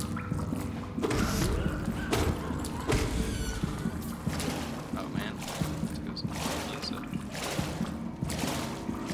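Sharp slashing and impact sounds strike repeatedly.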